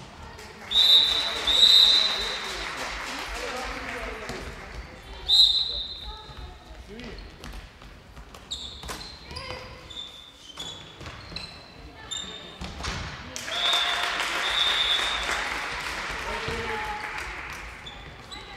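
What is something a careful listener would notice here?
A handball bounces and thuds on the floor.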